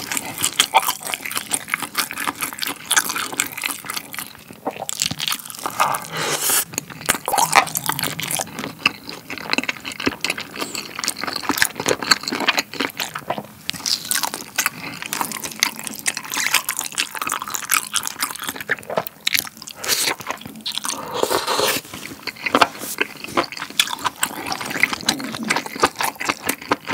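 A man chews food loudly and wetly, close to a microphone.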